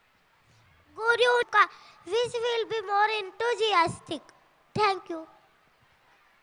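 A young girl speaks loudly into a microphone over a loudspeaker.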